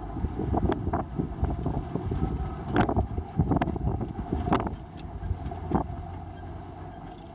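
A car rolls slowly over bumpy ground with a low rumble.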